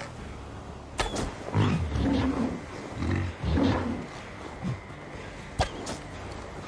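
Heavy blows strike with sharp thuds.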